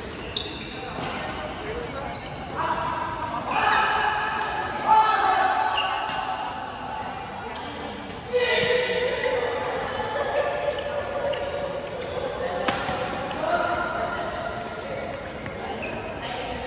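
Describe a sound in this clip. Shoes squeak sharply on a court floor in a large echoing hall.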